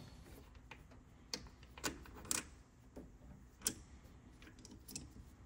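Ignition leads click and rustle as a hand pulls them off the spark plugs.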